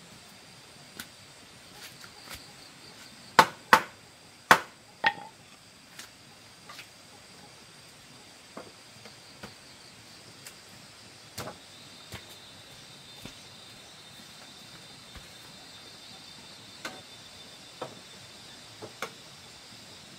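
Bamboo poles knock and clack together.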